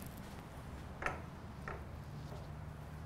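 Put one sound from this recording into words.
A door latch clicks as a door opens.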